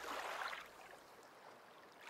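Small waves lap against a shore.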